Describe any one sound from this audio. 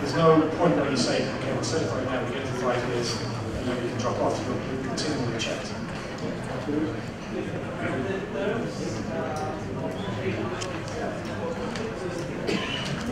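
A middle-aged man speaks calmly into a microphone, heard through a loudspeaker in a large room.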